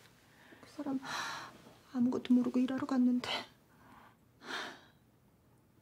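A young woman speaks tearfully and quietly, close by.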